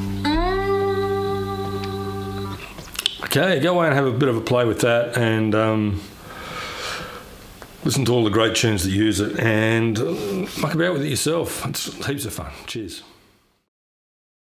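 A cigar box guitar plays a blues riff with a slide.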